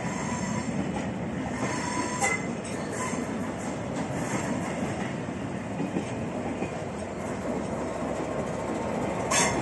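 Train carriages rumble and clatter past close by.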